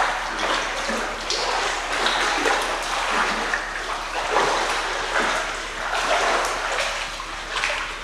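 A swimmer splashes through water in an echoing indoor pool.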